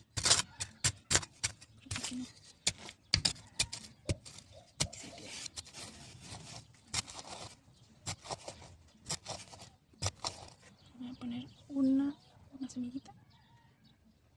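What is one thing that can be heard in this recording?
A small trowel digs into gritty earth.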